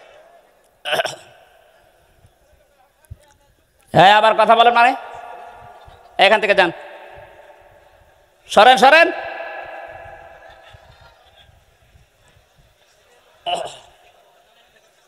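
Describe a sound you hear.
A man speaks forcefully in short bursts into a microphone, echoing over loudspeakers.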